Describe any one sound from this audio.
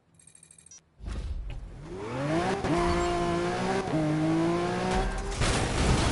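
A sports car engine roars and revs up as the car speeds along.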